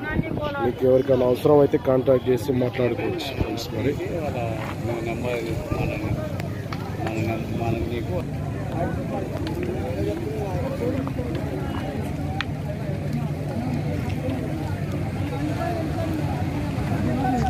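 A crowd of men chatters in the background outdoors.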